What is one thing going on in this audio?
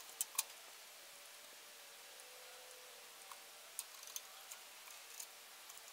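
Metal tools clink and clatter against a metal part.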